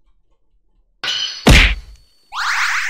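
A retro video game plays a sharp biting attack sound effect.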